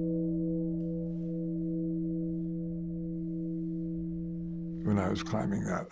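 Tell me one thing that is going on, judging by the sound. A large bell rings with a long, steady hum.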